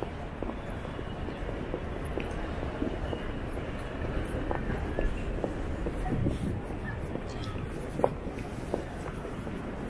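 A low city street hum carries on throughout.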